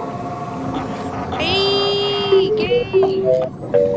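A small underwater drone whirs and beeps nearby.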